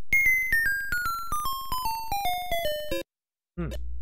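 Arcade game music plays a falling run of electronic beeps.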